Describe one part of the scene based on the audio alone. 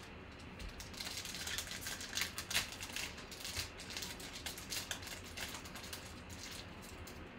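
A foil card pack crinkles and tears as hands open it.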